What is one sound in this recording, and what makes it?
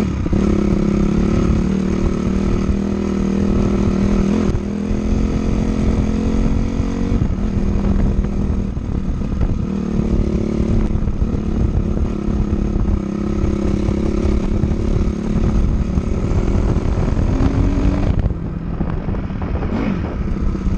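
A dirt bike engine revs and drones up close, shifting pitch as it changes gear.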